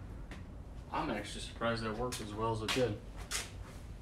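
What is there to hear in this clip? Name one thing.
A young man speaks briefly and casually, close by.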